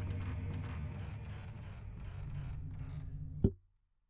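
Footsteps creak on wooden stairs.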